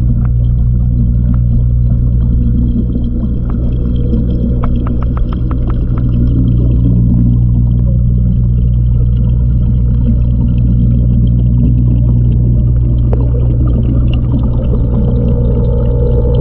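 An aquarium filter hums steadily underwater.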